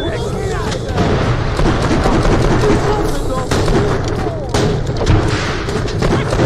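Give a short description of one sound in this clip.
Rapid gunshots fire with sharp blasts.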